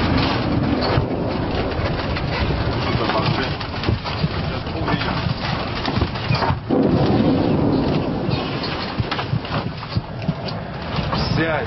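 A vehicle rattles and bumps over a rough dirt road.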